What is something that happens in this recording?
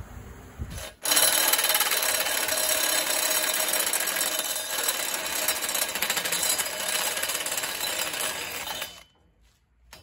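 A rotary sanding tool whirs loudly against metal.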